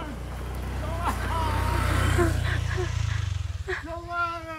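A motor scooter engine hums close by and passes.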